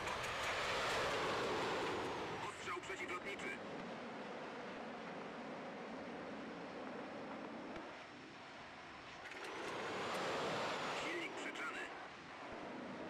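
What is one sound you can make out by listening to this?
Wind rushes loudly past a jet, swelling and fading.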